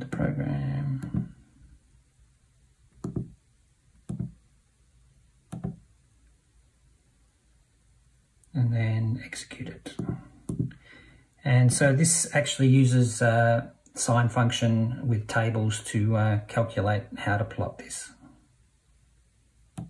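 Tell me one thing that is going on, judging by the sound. Calculator keys click softly as they are pressed.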